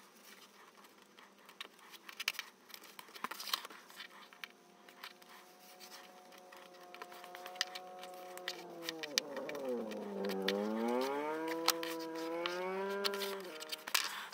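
A bone folder scrapes and rubs along paper.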